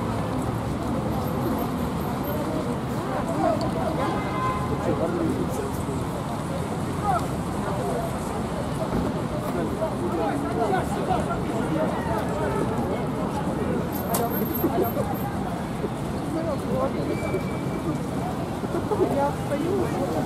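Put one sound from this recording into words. A crowd of people murmurs and calls out outdoors.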